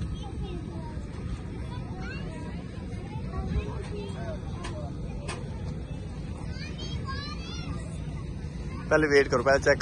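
Children chatter and call out in the distance outdoors.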